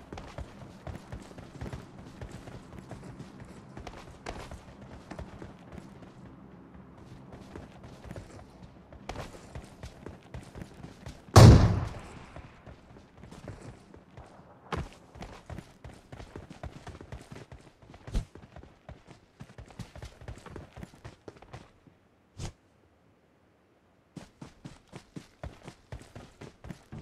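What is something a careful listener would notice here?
Footsteps crunch quickly on grass and dirt.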